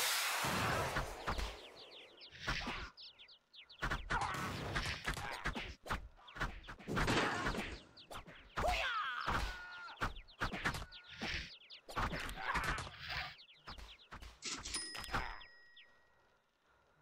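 Weapons slash and thud in a frantic brawl.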